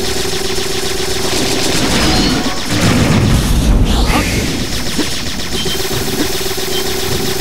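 Electric zaps crackle in a video game.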